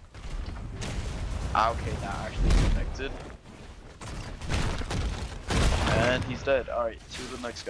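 Heavy blows land with loud crashing impacts.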